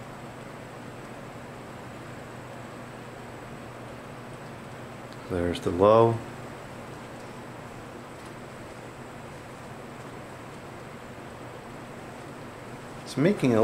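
A box fan hums and whirs steadily.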